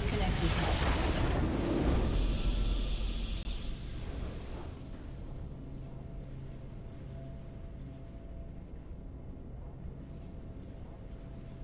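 A triumphant victory fanfare rings out and fades.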